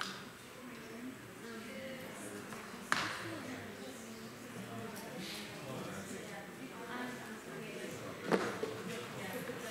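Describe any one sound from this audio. An older man speaks calmly into a microphone in a large room.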